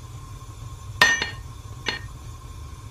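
A metal pan clanks down onto a stove.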